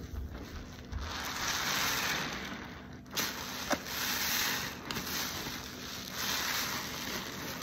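Foam bubbles fizz and crackle.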